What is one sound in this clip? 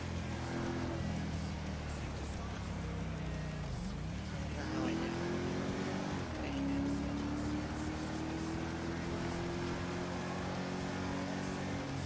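A car engine hums steadily and shifts in pitch as the car speeds along.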